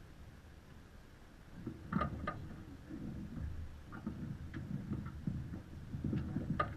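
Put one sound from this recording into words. Water splashes softly against a sailing boat's hull.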